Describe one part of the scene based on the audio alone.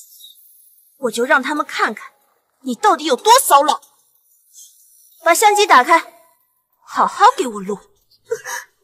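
A young woman speaks coldly and menacingly, close by.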